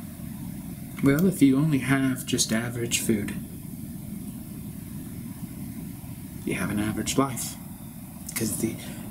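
A man speaks calmly and close by, with pauses between phrases.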